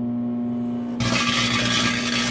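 A disc crackles and sizzles with electric sparks.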